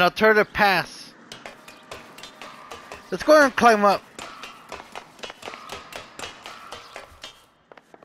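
Hands and feet clank on a metal ladder rung by rung.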